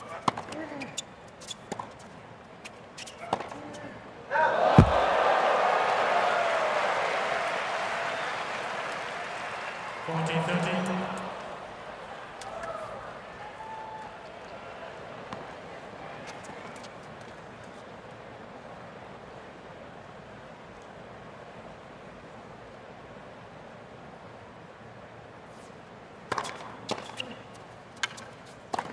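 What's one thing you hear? Tennis balls are struck sharply by rackets in a rally.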